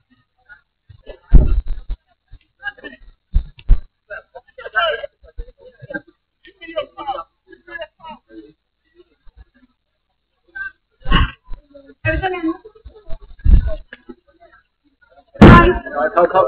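Men and women chat nearby in an outdoor crowd.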